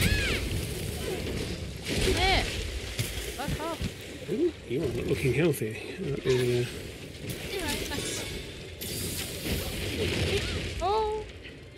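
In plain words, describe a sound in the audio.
Sparkling magical effects chime and whoosh.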